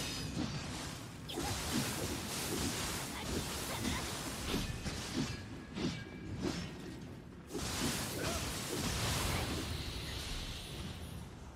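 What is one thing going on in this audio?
Swords clash and strike in quick, loud blows.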